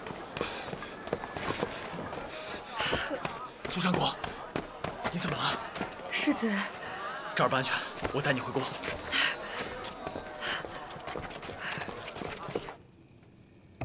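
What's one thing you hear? A crowd shouts and clamours loudly.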